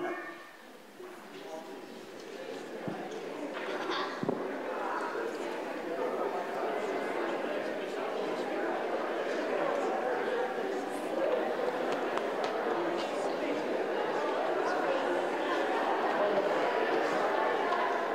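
A crowd of people chatter and murmur, growing louder.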